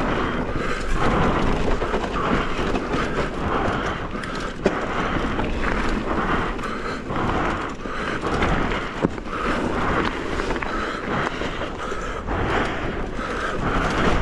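Bicycle tyres crunch and rattle over a rocky trail.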